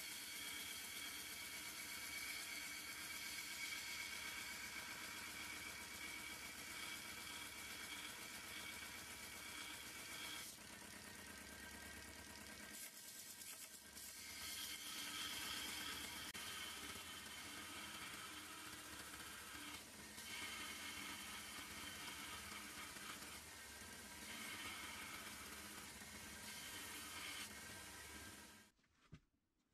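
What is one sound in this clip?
Metal grinds against a sanding belt with a harsh, hissing scrape.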